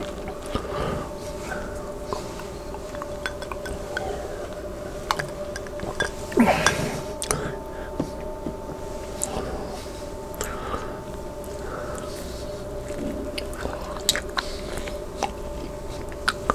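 A middle-aged man talks casually and close to a microphone.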